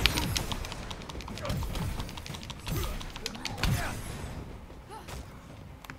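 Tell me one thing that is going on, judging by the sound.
Heavy footsteps thud as an armoured figure runs.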